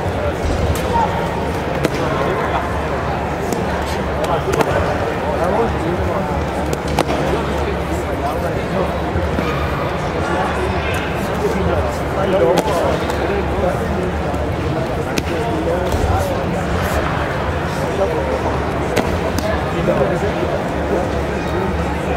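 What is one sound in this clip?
Bare feet thud and slap on mats.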